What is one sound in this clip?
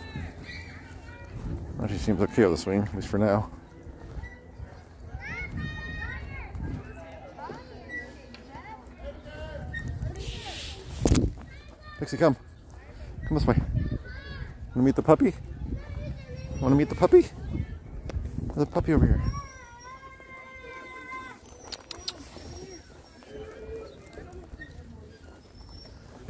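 Footsteps rustle softly on grass.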